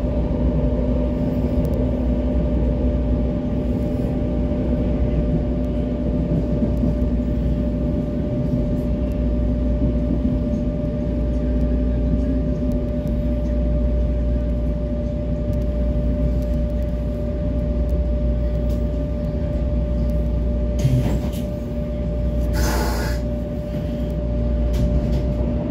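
A train's motor hums with a steady tone.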